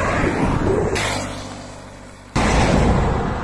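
A motorcycle passes by.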